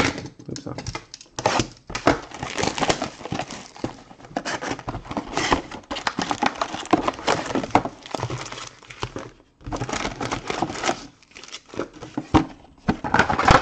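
Foil wrappers crinkle and tear as packs are opened by hand.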